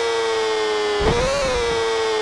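A motorcycle thumps down onto the road.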